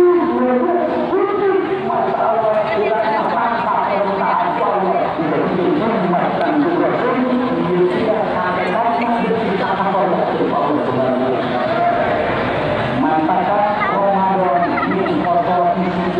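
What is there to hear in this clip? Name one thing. A large crowd of men and women chatters loudly all around, outdoors.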